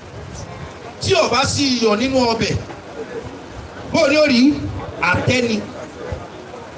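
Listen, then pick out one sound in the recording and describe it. A man chants loudly into a microphone through a loudspeaker, in bursts.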